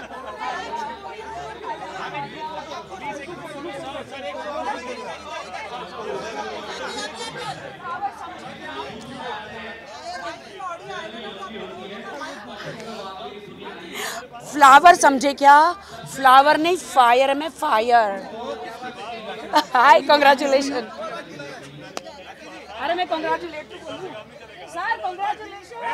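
A woman talks animatedly into microphones close by.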